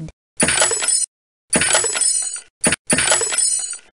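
A wooden crate bursts apart with a crack.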